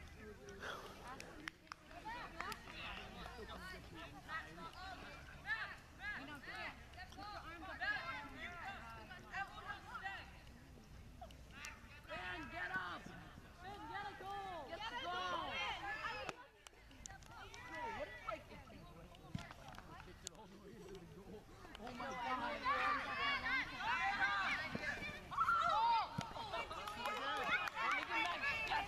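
Young players shout and call to each other outdoors across an open field.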